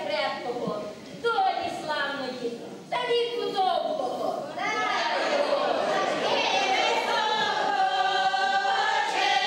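A large choir of women sings a folk song together.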